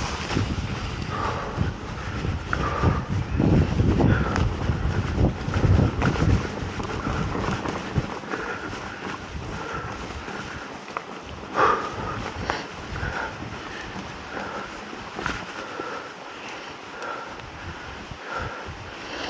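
Mountain bike tyres roll over a dirt trail and dry leaves.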